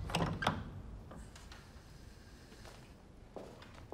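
Footsteps tap on a wooden floor indoors.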